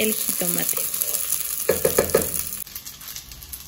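A wooden spoon scrapes and stirs dry rice in a pot.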